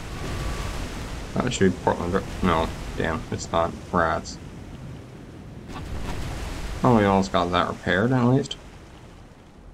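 Shells splash heavily into the sea nearby.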